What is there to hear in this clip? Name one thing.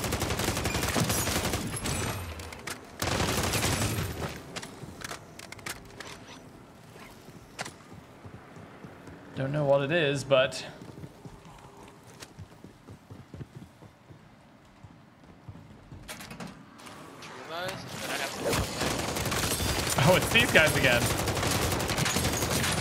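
Gunfire bursts rapidly.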